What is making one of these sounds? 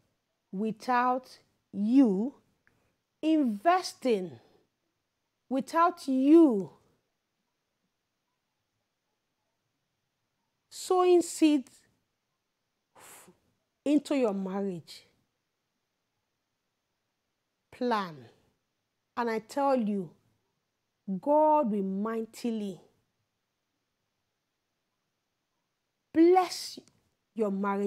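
A woman speaks with animation and pauses, close to a microphone.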